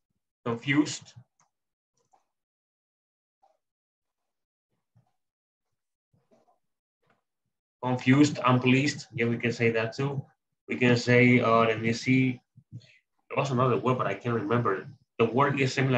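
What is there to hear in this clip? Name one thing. A man speaks calmly, heard through an online call, pausing now and then.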